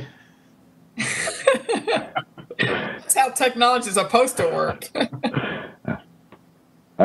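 A woman speaks and laughs over an online call.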